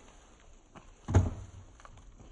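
A heavy box thumps down onto paving stones.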